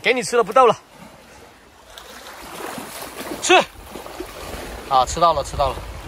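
Small waves lap gently against a rocky shore.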